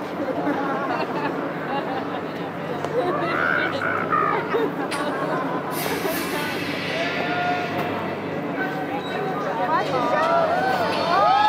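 A crowd of people chatters and murmurs nearby outdoors.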